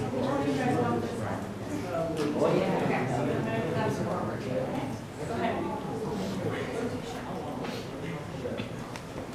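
Many men and women chatter at once in an echoing room.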